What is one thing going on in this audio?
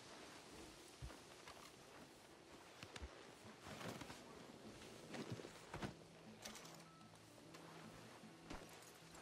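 A horse's hooves thud on soft ground.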